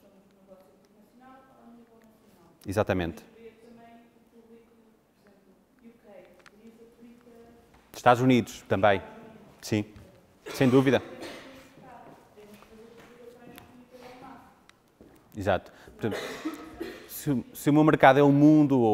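A man lectures through a microphone in a large, echoing hall.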